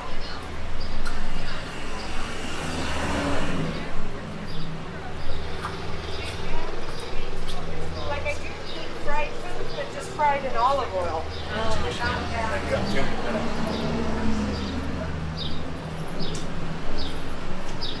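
Traffic hums steadily in the distance.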